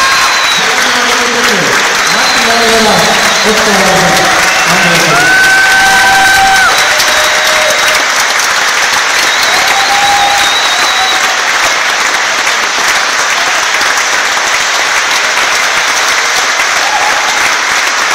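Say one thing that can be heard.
A crowd cheers and applauds loudly.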